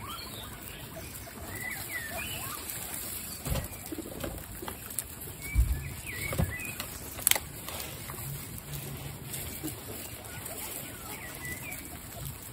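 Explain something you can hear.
Guinea pigs squeak in short high chirps.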